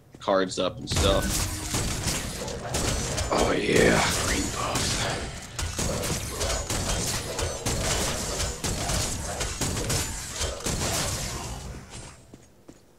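Guns fire in rapid bursts with sharp impacts.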